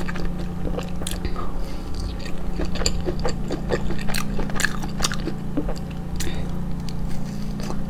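A young woman bites into grilled skewered meat.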